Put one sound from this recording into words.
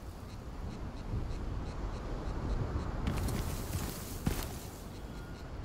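Footsteps crunch over dry grass and dirt.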